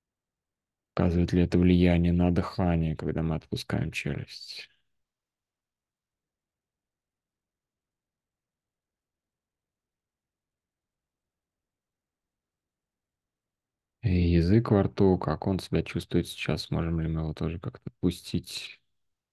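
A man speaks calmly through an online call, pausing between phrases.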